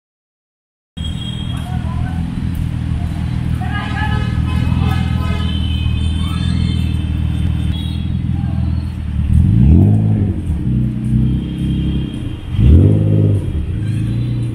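A sports car engine idles with a deep, throbbing rumble.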